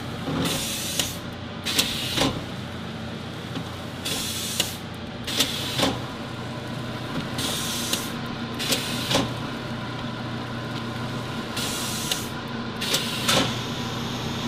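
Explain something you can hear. A sealing bar clunks down at regular intervals.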